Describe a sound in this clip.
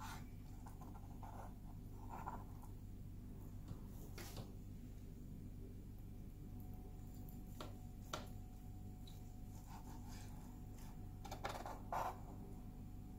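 A knife taps softly on a cutting board while slicing.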